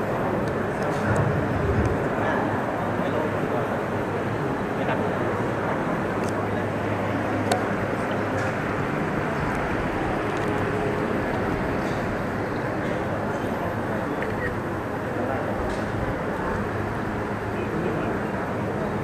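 A crowd of men recites prayers together in unison in a large echoing hall.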